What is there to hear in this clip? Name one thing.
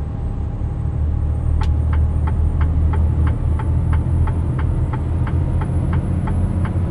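Tyres roll steadily on a highway.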